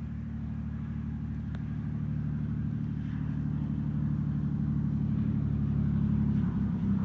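A small propeller plane's engine drones loudly and grows closer.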